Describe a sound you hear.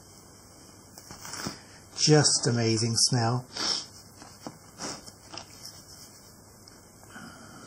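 A crusty loaf of bread crackles as hands handle it.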